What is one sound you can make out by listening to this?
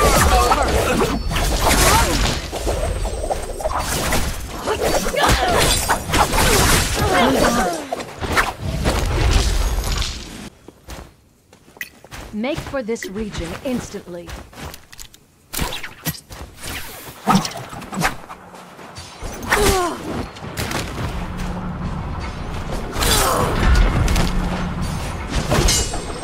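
Weapons clash and blasts go off in a fast game fight.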